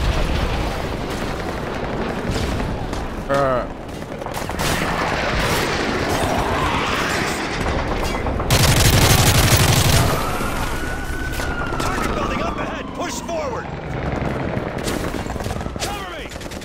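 Rifle gunfire cracks in rapid bursts.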